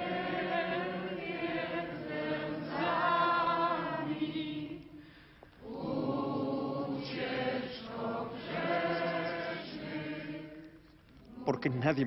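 A crowd sings a slow hymn together.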